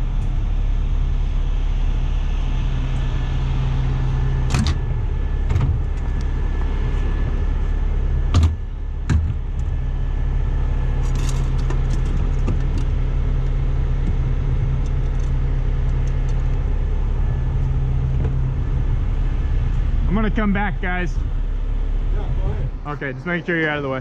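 A large truck engine idles with a low, steady rumble.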